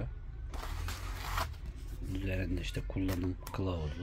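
Paper rustles as leaflets are handled.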